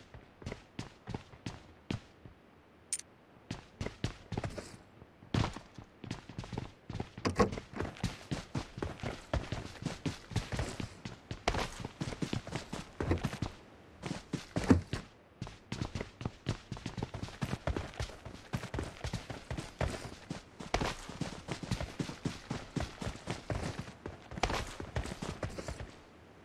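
Quick footsteps run over hard floors and grass.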